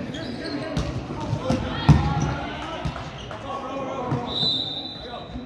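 Players call out to each other loudly in an echoing hall.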